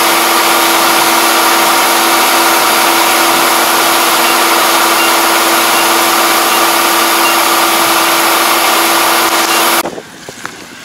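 Rice grain pours from a combine's unloading auger.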